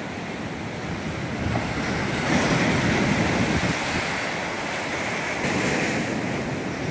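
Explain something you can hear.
Waves crash against rocks and surge in loud, rolling bursts.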